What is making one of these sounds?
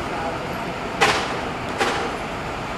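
Air hisses sharply from a bus, twice.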